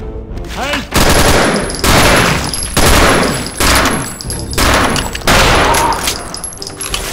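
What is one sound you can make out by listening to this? A heavy gun fires in loud, booming bursts.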